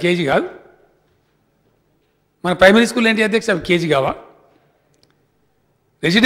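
A middle-aged man speaks firmly through a microphone, in short bursts with pauses.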